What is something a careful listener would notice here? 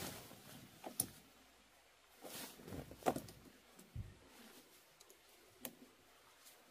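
Tent poles click and knock into place.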